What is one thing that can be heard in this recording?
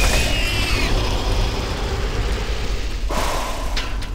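A heavy metal door slides open.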